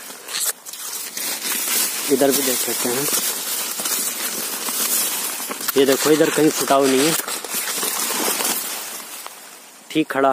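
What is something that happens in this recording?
Stiff leaves rustle and brush close by.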